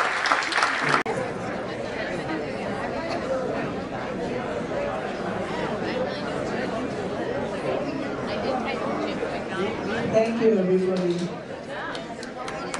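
A crowd of people murmurs and chatters in a large room.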